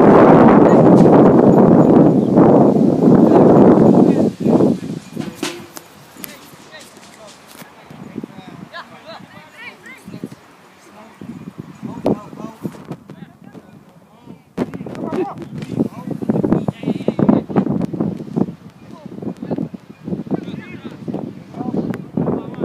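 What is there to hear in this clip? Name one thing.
Young men call out to each other across a playing field, far off.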